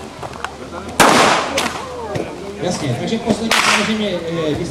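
Loud gunshots crack outdoors.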